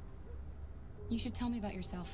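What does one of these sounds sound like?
A young woman speaks gently and calmly, close by.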